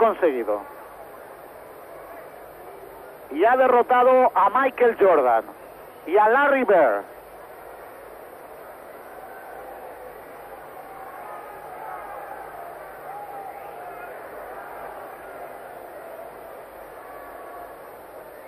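A large crowd murmurs in the background.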